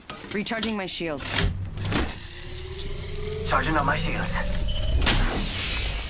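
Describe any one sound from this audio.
A shield battery charges with an electric crackle and hum.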